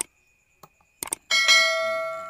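A plastic lid clicks open.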